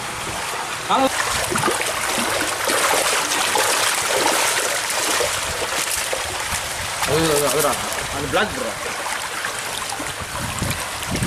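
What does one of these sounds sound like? Water splashes as fish thrash in a net.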